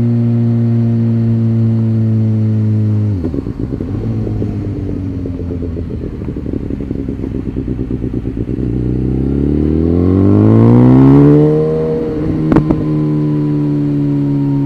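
A motorcycle engine hums steadily, drops to a burbling idle while coasting, then revs up as it accelerates.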